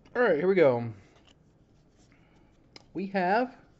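A plastic card wrapper crinkles and rustles as hands open it.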